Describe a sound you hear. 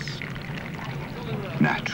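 Coffee pours into a cup.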